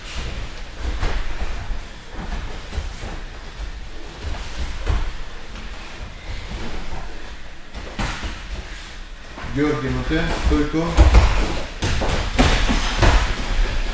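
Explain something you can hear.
Bodies thump and scuff on a padded mat.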